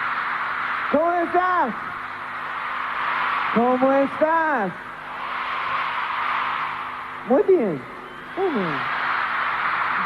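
A young man sings into a microphone over loudspeakers.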